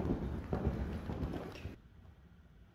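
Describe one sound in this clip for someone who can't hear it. A horse's hooves thud on sand as it canters.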